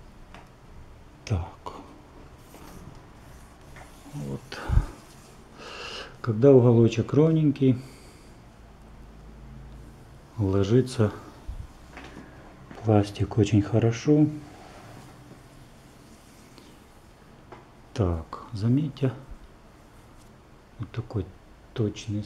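A fingertip taps and rubs against a painted wooden panel.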